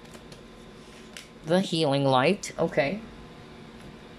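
A card is set down on a table with a soft tap.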